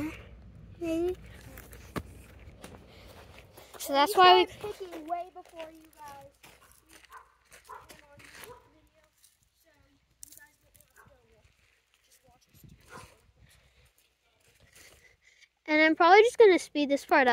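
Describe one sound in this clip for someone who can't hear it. A child talks excitedly close by.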